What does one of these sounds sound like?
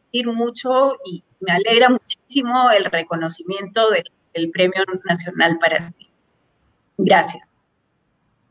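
A middle-aged woman speaks warmly and with animation over an online call.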